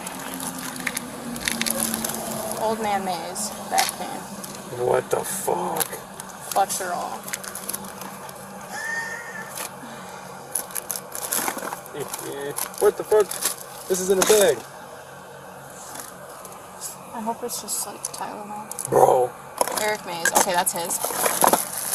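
Hands rummage through plastic bags and containers, rustling and clattering close by.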